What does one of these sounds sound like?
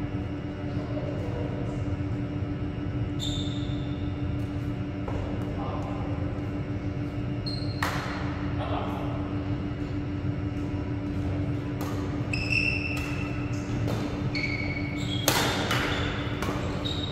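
A steady hum of ventilation fills a large echoing hall.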